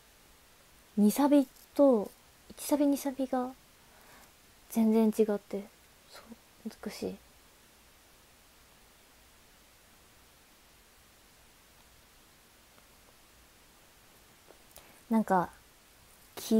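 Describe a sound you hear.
A young woman speaks calmly and close to the microphone.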